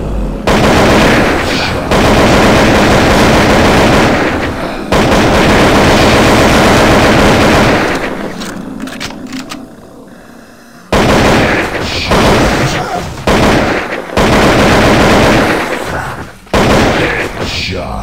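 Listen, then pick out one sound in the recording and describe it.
Rapid gunfire rattles in long bursts.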